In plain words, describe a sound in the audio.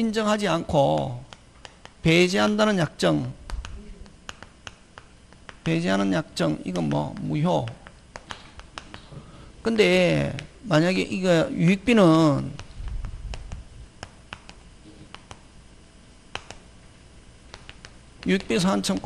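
A man lectures calmly into a handheld microphone, with pauses.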